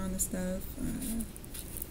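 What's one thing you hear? A paper card rustles in a hand.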